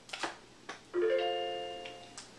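A short electronic chime rings out and fades.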